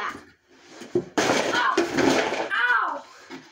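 A chair thumps and scrapes on a carpeted floor.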